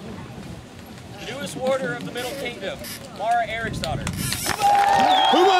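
A man speaks to a crowd outdoors.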